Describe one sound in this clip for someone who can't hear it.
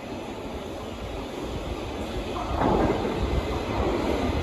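A train rumbles closer through a tunnel, growing louder.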